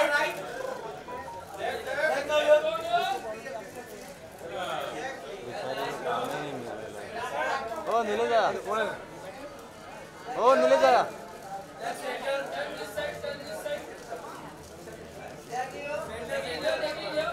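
Several men call out loudly nearby.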